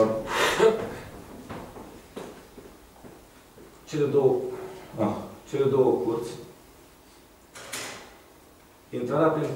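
A man speaks calmly, pausing between phrases.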